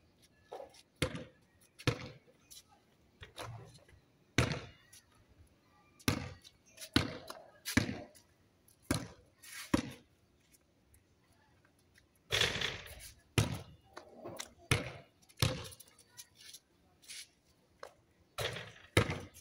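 A basketball bounces repeatedly on a concrete court outdoors.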